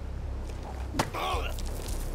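A bat strikes a man with a sharp thud.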